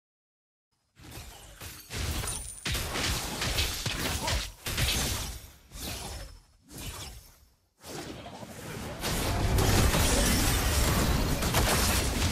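Video game combat effects clash, whoosh and crackle loudly.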